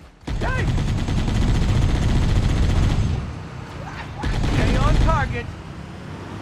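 Loud explosions boom nearby.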